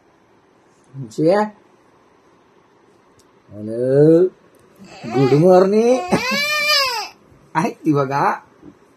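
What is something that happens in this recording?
A man speaks playfully and affectionately up close.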